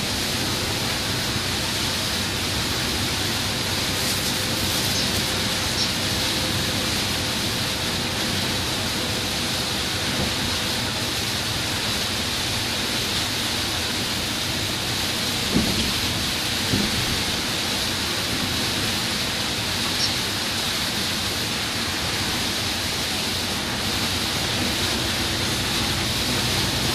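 Windshield wipers sweep back and forth.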